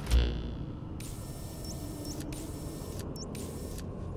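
Soft electronic beeps and hums play from a game menu.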